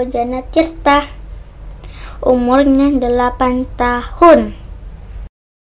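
A young boy speaks loudly and with animation close by.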